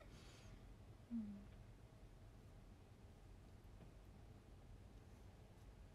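A comb brushes through hair.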